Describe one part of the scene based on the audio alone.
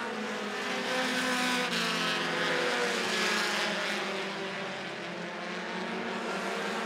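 Race car engines roar loudly, rising and falling in pitch as the cars speed around the track.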